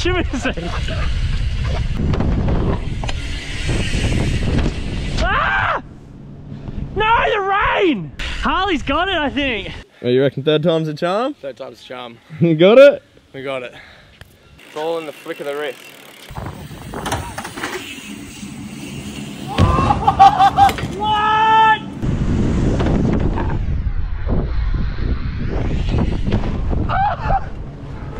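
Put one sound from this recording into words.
Bicycle tyres roll over concrete with a low rumble.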